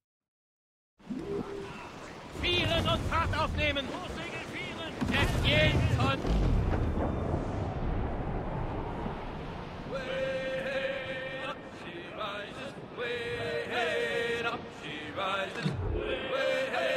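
Waves wash against a sailing ship's hull.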